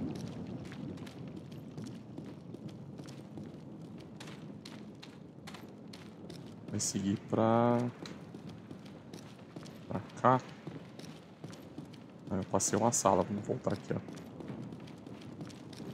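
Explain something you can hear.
Footsteps run quickly over a stone floor.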